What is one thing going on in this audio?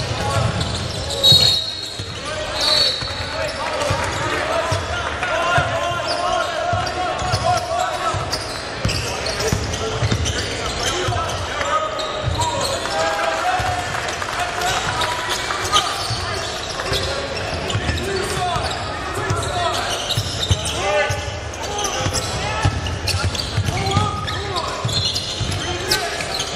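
Players shout and call out across an echoing hall.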